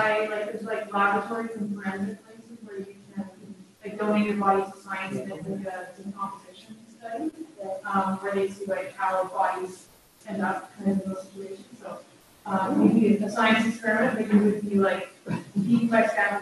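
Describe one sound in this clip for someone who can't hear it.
An elderly man speaks calmly in a room with a slight echo.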